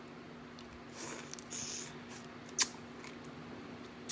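A woman slurps and sucks loudly.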